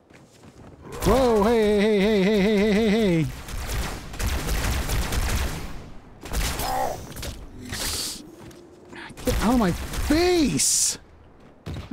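A plasma grenade bursts with a loud crackling blast.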